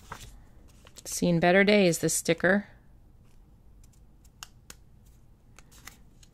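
A sticker peels off its paper backing with a soft crackle.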